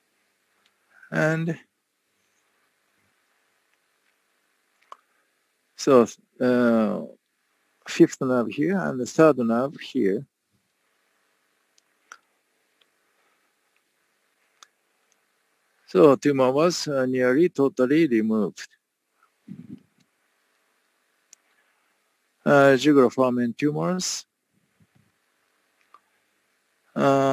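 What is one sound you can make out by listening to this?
A man speaks calmly through a microphone on an online call, in short bursts with pauses.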